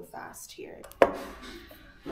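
A sandwich press lid closes with a clack.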